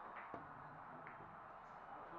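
Billiard balls knock together.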